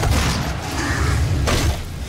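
A demon is torn apart with wet crunches.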